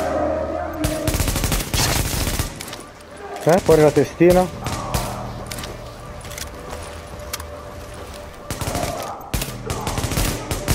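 Gunfire rattles in bursts nearby.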